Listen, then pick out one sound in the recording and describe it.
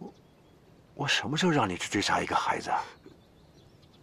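An older man speaks sternly, close by.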